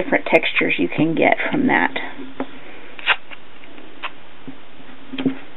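Fingers rub and press masking tape onto paper with soft scuffs.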